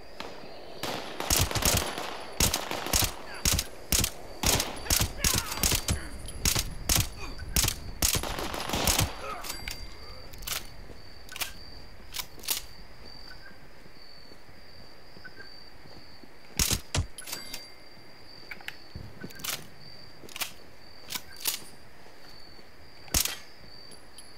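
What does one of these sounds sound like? A rifle fires a rapid series of loud shots.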